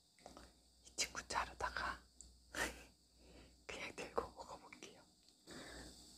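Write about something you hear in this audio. A young woman speaks softly and close to the microphone.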